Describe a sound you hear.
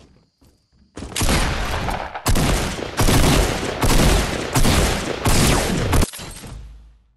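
A gun fires in loud bursts.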